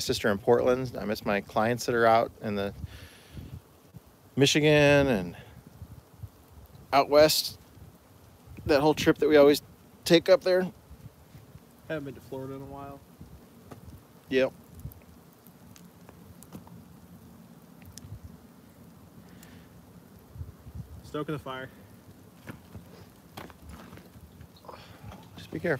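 A fire crackles in a metal barrel.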